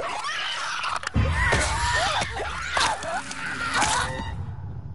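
Heavy blows thud during a close struggle.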